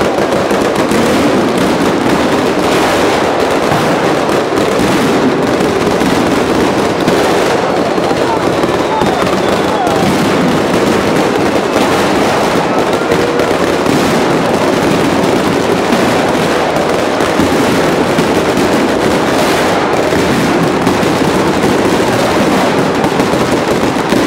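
Firecrackers explode in a dense, continuous barrage.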